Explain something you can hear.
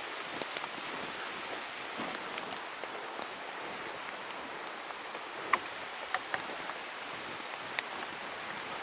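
A trekking pole taps the ground.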